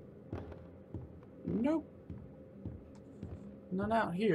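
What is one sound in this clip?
Footsteps thud on a wooden floor at a steady pace.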